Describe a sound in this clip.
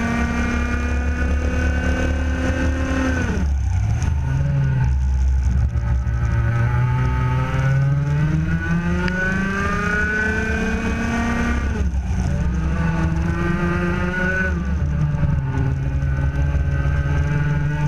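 A kart engine buzzes loudly, revving up and dropping as it shifts speed.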